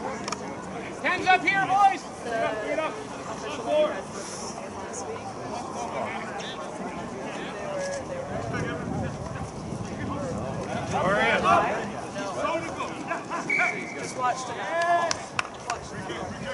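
Young men shout to each other at a distance outdoors.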